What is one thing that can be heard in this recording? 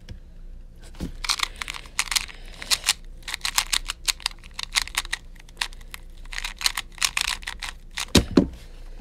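Plastic puzzle cube layers click and clatter as they are turned quickly.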